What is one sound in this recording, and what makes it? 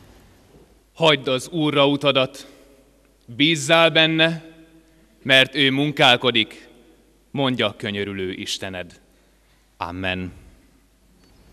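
A man speaks loudly and solemnly in a large echoing hall, in short phrases.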